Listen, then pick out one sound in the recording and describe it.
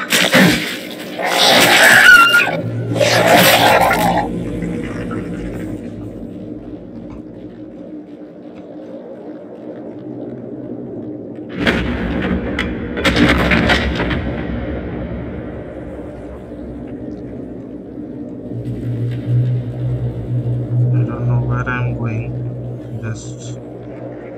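A heavy body scrapes along the floor as it is dragged.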